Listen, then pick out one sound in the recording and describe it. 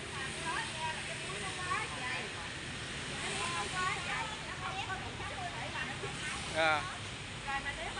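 A younger woman answers, speaking quickly.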